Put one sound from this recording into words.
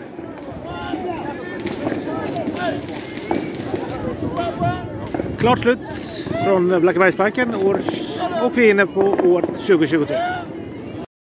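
A crowd of adults talks and cheers outdoors.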